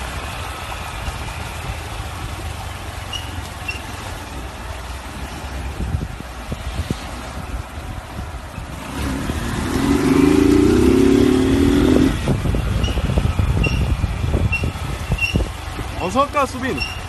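A motorcycle engine rumbles and revs close by.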